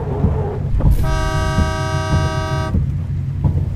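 A vehicle horn blares loudly for a moment.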